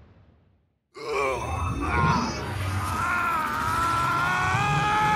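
A huge creature roars and growls.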